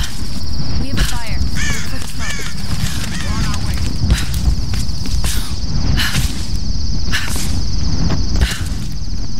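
A torch flame crackles and flutters.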